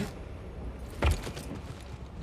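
A body rolls and thuds onto stone.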